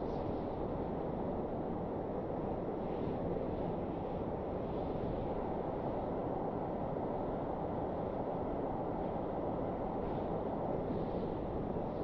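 Jet engines roar steadily.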